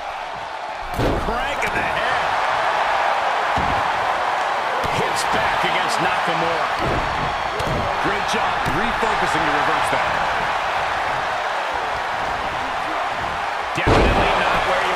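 Bodies slam heavily onto a wrestling ring mat.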